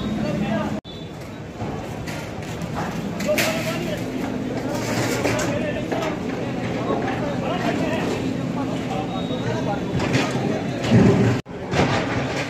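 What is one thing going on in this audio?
Men talk loudly nearby.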